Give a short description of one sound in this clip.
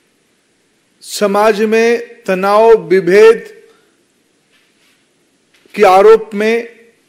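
A man speaks firmly into a microphone, in short bursts.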